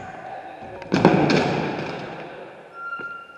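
A BMX bike and rider crash onto a concrete floor.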